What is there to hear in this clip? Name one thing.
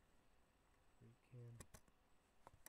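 A man speaks a few quiet words close to the microphone.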